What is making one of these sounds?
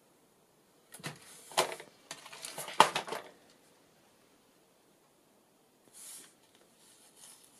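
Paper rustles and slides as a hand moves a folded card.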